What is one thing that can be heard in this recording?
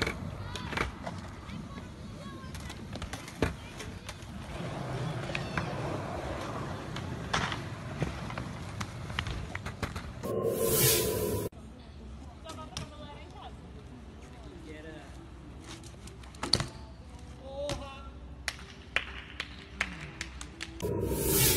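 Bicycle tyres roll and scrape on concrete.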